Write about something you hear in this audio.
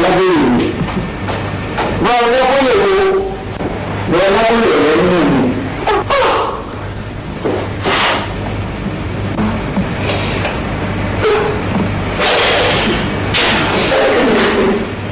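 A young man shouts and wails with great agitation close by.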